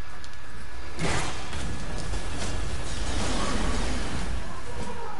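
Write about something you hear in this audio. A magical blast bursts with a loud crackling roar.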